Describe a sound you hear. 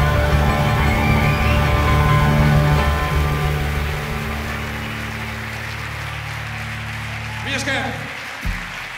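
A piano plays chords.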